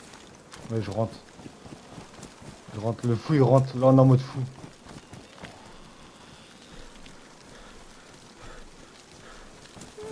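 Footsteps rustle through grass and crunch on gravel.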